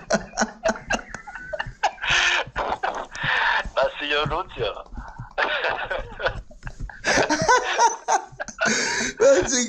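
A middle-aged man laughs loudly and heartily close to a microphone.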